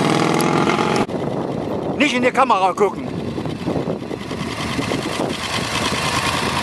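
A motorcycle engine idles and revs up briefly.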